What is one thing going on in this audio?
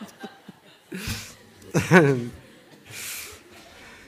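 An elderly man laughs into a microphone.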